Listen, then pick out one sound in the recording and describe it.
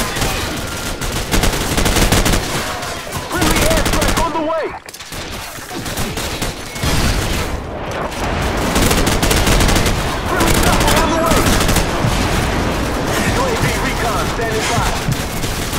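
Rapid gunfire rattles and bursts.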